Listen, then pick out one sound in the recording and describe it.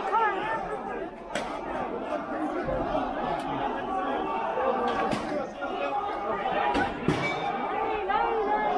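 A crowd of people talks loudly outdoors on a street.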